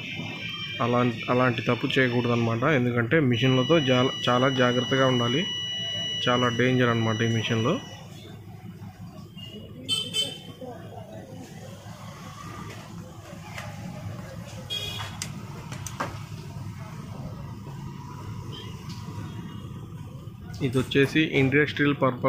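Metal parts clink as a hand handles an angle grinder.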